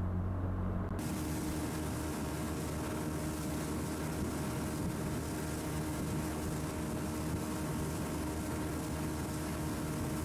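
A motorboat cruises past in the distance.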